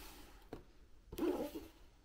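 Sandals rustle against a cardboard box as they are handled.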